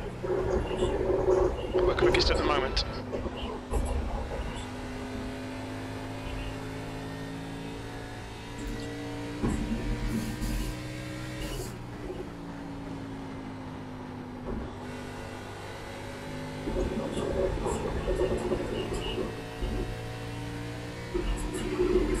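A race car engine drones steadily, its pitch rising and falling with the speed.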